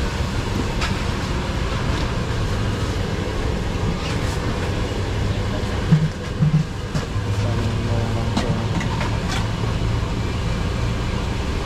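A vendor stirs food in a wok with a metal ladle.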